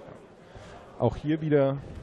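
Punches thud against a boxer's gloves and body.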